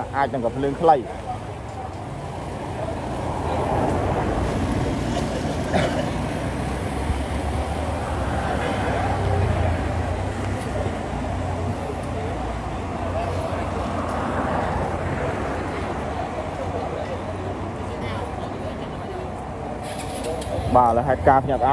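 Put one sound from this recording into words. A crowd of people chatters and murmurs outdoors.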